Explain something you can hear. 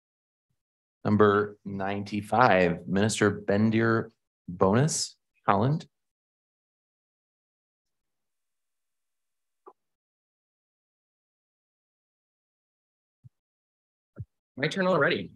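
A young man speaks calmly into a microphone, with pauses.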